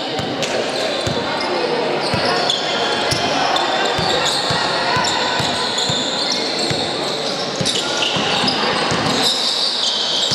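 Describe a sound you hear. A basketball bounces on a hard court in a large echoing hall.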